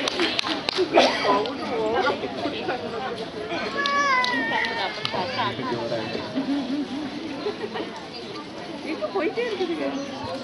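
Young children chatter and shout outdoors.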